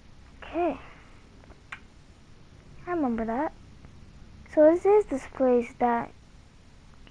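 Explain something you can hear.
A young man speaks in short, expressive phrases close by.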